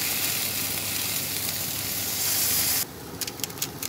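Fish sizzles in a hot frying pan.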